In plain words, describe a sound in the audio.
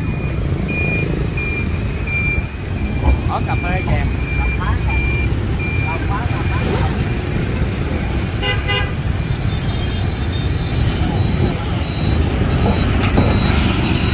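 Motorbikes pass by with buzzing engines.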